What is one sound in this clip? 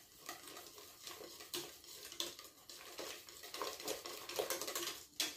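A wire whisk clinks and scrapes against a metal pot while stirring a thick liquid.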